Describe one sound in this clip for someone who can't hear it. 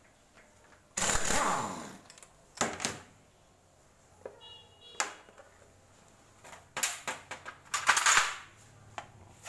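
A power tool whirs in short bursts.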